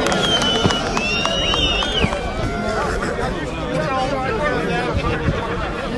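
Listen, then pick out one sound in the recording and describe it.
A large crowd of men shouts and chants outdoors.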